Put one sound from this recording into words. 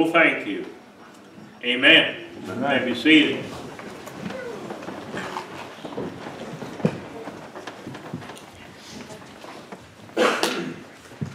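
An elderly man speaks slowly into a microphone in a reverberant room.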